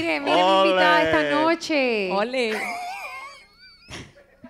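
A young woman sings loudly through a microphone.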